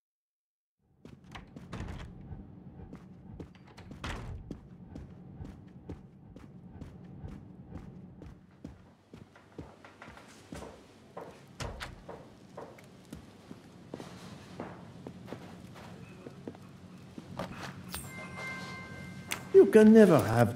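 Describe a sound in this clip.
Footsteps tap steadily on a floor.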